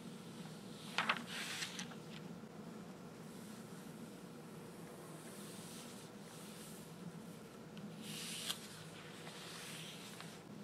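A glossy magazine page turns with a papery rustle.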